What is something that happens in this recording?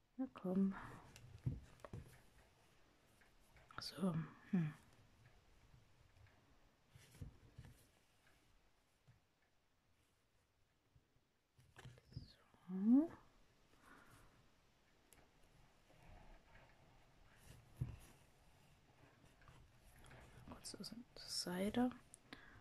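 Thread is pulled through stiff fabric with soft rustling scrapes.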